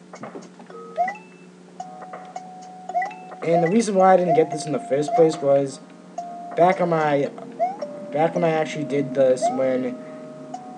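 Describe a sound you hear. Collected coins ring out with bright chimes.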